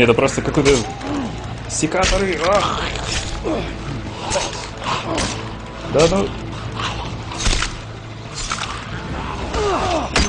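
Zombies growl and snarl up close.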